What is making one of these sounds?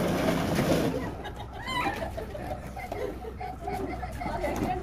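Young children talk and call out.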